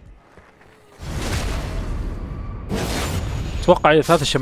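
A magical blast bursts with a loud rushing whoosh.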